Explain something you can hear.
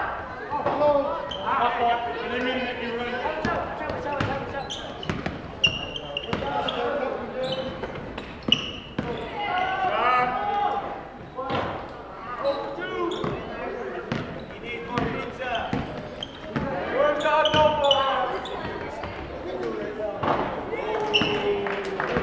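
Sneakers squeak sharply on a hardwood floor in an echoing gym.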